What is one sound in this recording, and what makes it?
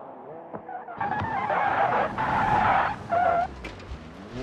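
Tyres skid and spray gravel.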